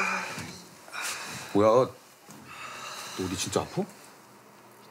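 A young man asks a worried question close by.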